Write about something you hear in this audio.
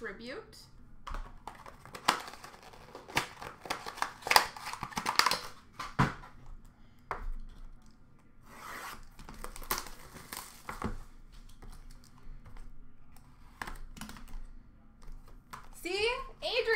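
Hands shuffle through cardboard card boxes.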